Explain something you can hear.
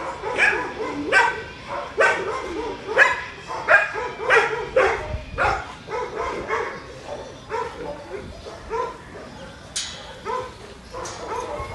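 A dog barks repeatedly nearby.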